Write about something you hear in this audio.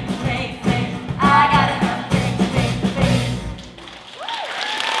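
A live band plays a lively song in a large hall.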